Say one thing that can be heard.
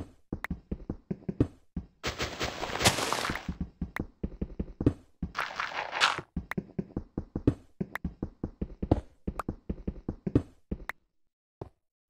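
A pickaxe chips at stone with rapid, repeated knocks.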